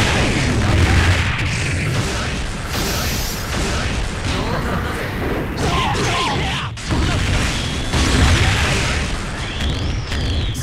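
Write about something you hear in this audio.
Energy blasts whoosh and crackle loudly.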